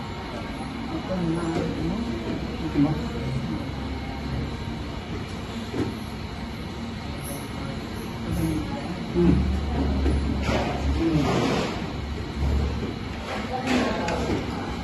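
A man and women talk quietly nearby.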